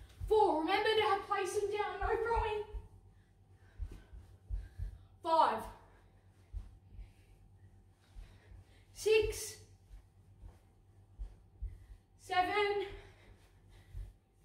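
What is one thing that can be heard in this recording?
A child's feet thump on a carpeted floor.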